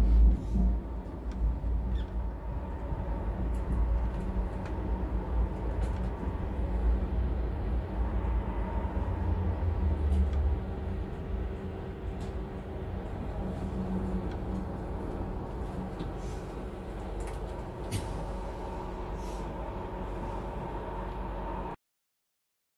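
A tram hums and rumbles steadily along its rails.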